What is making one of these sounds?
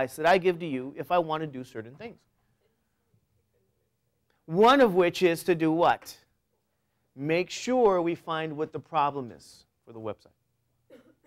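A man speaks with animation to a room, in short bursts with pauses.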